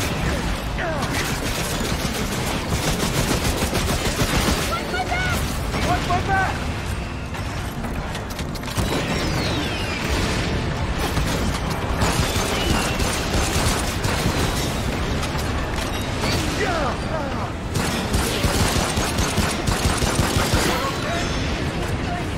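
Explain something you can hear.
Rapid gunfire rattles and echoes in a large metal space.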